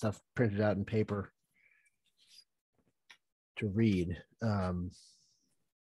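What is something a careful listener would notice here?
A man speaks calmly over an online call, in short phrases with pauses.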